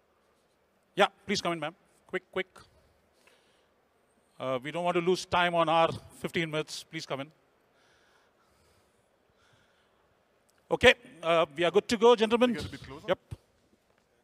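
A man speaks with enthusiasm through a microphone.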